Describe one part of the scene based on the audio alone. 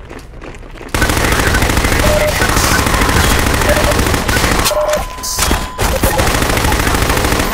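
A rifle fires in rapid bursts.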